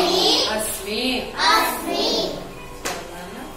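Children's voices chatter and call out nearby.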